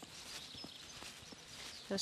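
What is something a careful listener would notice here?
A horse's hooves thud softly on sand as it walks.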